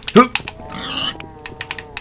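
A pig squeals when struck.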